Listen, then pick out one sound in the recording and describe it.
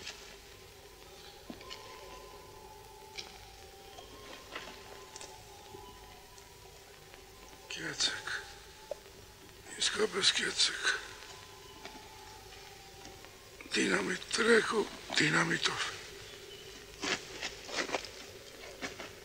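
Dry grass rustles as a man moves through it in a crouch.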